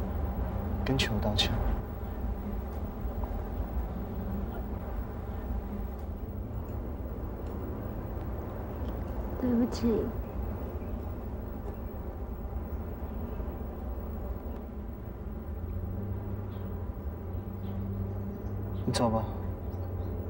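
A young woman speaks a few short, tense words close by.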